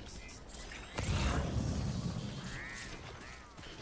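A deep electronic whoosh sweeps out and fades.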